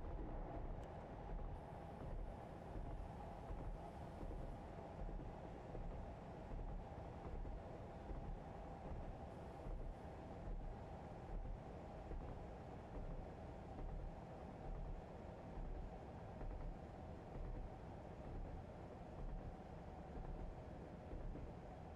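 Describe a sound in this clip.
Train wheels clatter over rail joints in a regular rhythm.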